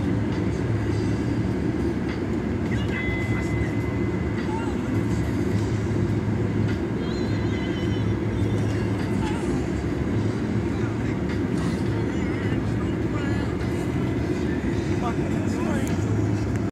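A car engine rumbles steadily from inside the car as it drives.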